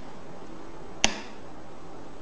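A power switch snaps on with a sharp click.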